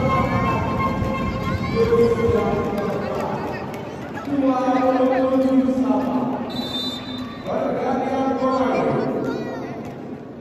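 A large crowd cheers and chants in an echoing indoor hall.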